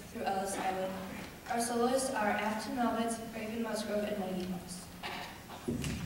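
A young woman speaks through a microphone in a large hall.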